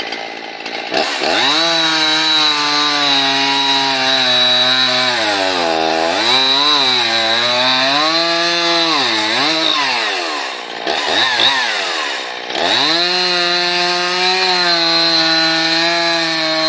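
A chainsaw engine revs loudly close by and cuts into wood.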